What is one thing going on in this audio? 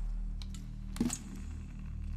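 A small plastic cassette player is set down on a hard shelf with a clack.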